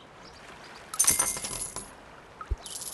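Coins jingle brightly.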